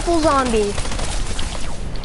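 Guns fire in quick, sharp bursts.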